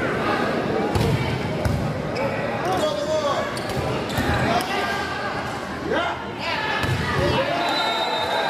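A volleyball is struck hard several times.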